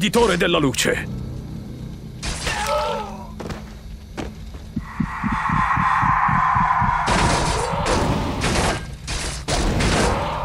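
Swords and weapons clash rapidly in a fight.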